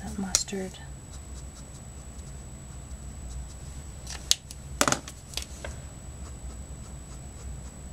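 A marker tip scratches and squeaks softly on paper.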